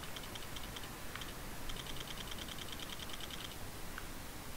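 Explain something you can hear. Game menu sounds tick rapidly as a list scrolls.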